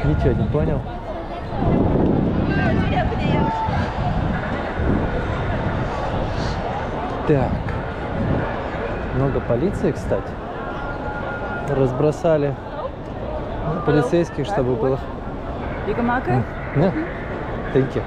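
A busy crowd of people chatters all around outdoors.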